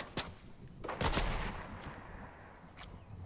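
A single rifle shot cracks and echoes.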